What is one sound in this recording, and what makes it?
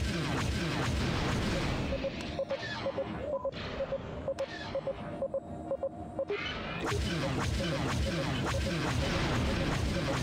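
Laser cannons fire in rapid, falling zaps.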